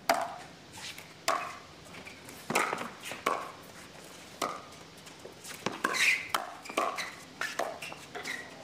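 Paddles strike a plastic ball in a quick back-and-forth rally.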